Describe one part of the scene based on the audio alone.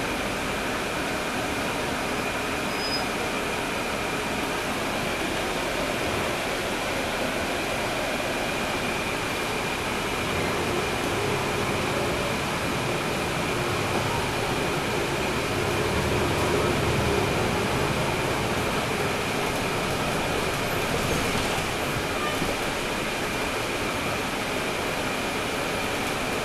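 The bus rattles and rumbles as it rolls along the street.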